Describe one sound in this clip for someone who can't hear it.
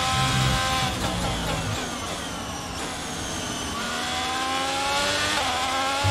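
A racing car engine drops in pitch as the car brakes hard, then revs up again.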